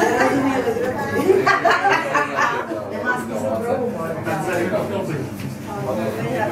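Several men and women talk over one another in a lively, crowded room.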